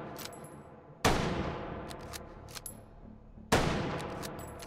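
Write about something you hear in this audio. A rifle fires twice, each shot booming and ringing out slowly.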